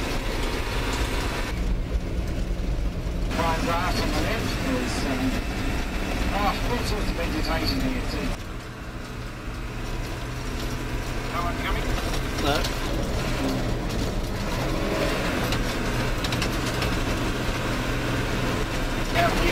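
Tyres roll and crunch over a gravel road.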